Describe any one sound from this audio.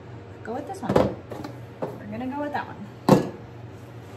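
A tool is set down on a plastic-covered table with a knock.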